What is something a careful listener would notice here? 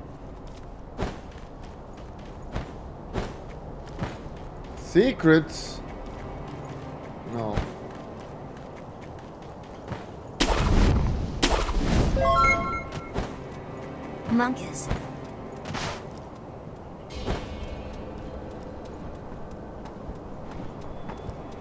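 Footsteps tap on ground and stone.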